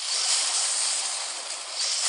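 A fireball explodes with a loud burst.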